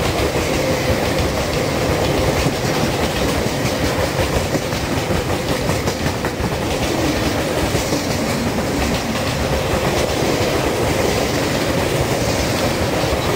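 A long freight train rumbles past close by, its wheels clattering steadily on the rails.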